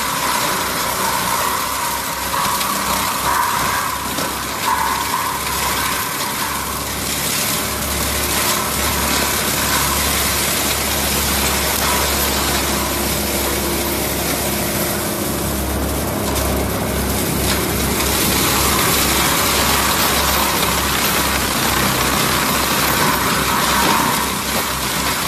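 A diesel engine roars steadily.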